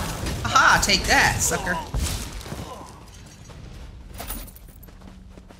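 Ice magic crackles and shatters in bursts.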